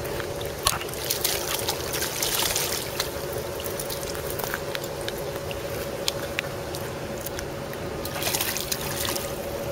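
A hooked fish thrashes and splashes at the water's surface.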